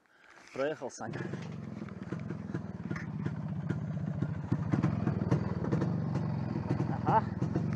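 A motorcycle engine rumbles steadily nearby.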